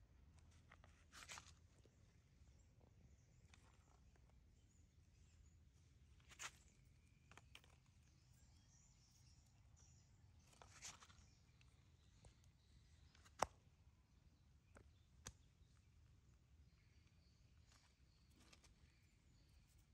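Dry leaves rustle and crunch as a small monkey scampers over them.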